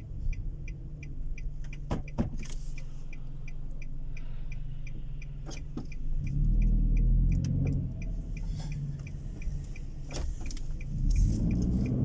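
A car engine hums steadily and grows louder as the car speeds up.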